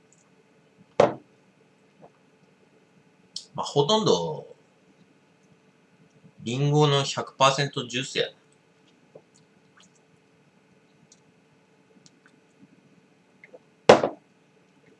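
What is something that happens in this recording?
A glass is set down on a hard table with a short knock.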